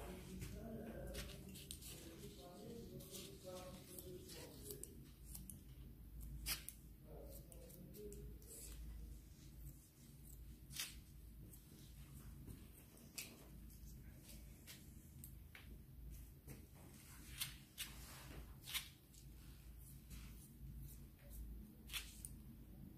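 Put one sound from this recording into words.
Scissors snip sharply through hair, close up.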